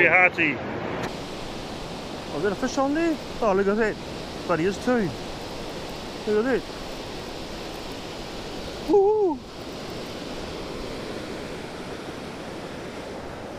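Surf breaks onto a beach.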